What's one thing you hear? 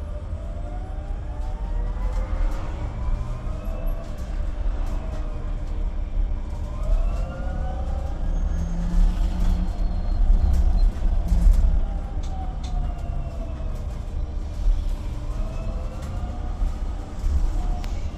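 An electric motor whines, rising and falling in pitch as the bus speeds up and slows.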